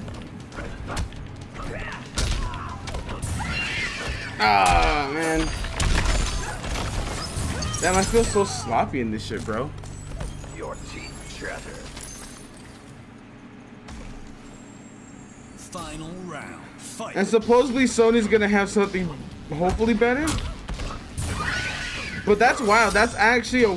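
Punches and kicks land with heavy thuds in a video game fight.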